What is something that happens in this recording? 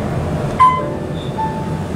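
An elevator chime rings once.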